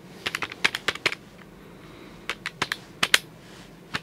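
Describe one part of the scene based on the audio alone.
Calculator keys click under a finger.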